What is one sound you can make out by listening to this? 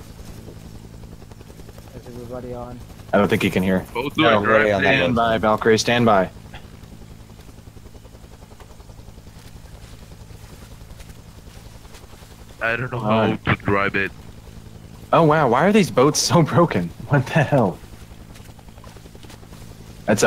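A small boat's motor hums steadily.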